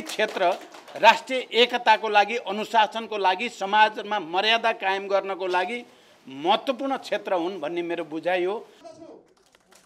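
An elderly man speaks forcefully into microphones, close by.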